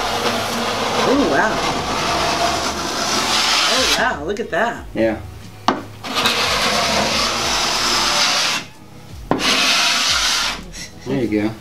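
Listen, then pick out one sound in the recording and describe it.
A sanding block scrapes back and forth over rough wood.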